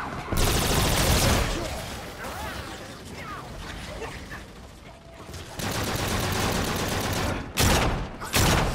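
A gun fires in rapid, loud bursts.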